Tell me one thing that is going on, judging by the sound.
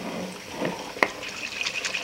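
A glass jar clinks against a glass bowl.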